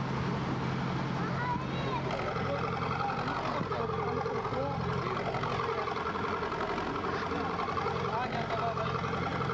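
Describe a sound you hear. A gas flame roars loudly and steadily outdoors.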